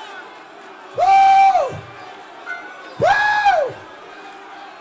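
A man shouts loudly through a microphone.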